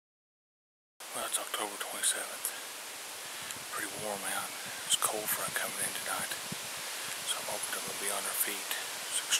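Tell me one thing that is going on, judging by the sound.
A middle-aged man talks calmly and close up, outdoors.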